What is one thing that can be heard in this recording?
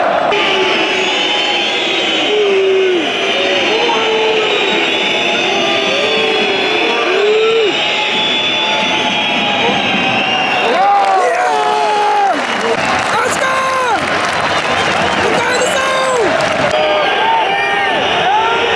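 A large stadium crowd sings and chants loudly throughout.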